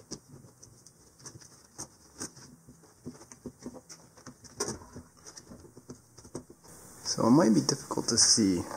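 Plastic parts click and rattle as they are handled.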